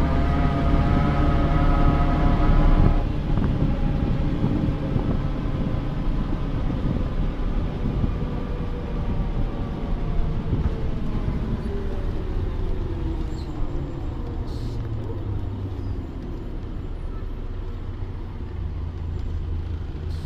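A bus engine rumbles low and steady throughout.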